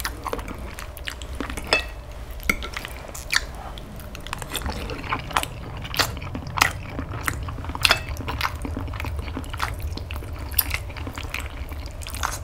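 A man chews and smacks his lips loudly up close.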